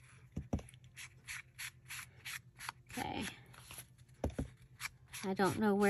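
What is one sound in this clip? A foam ink tool dabs and brushes softly against paper in quick repeated strokes.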